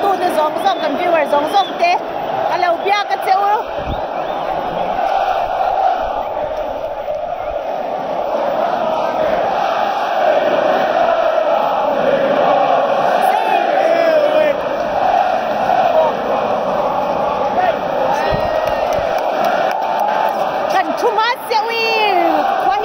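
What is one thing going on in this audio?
A large stadium crowd sings and chants loudly all around.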